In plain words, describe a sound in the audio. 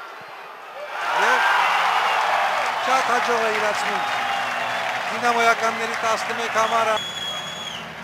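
A large stadium crowd roars and cheers loudly, then slowly quietens.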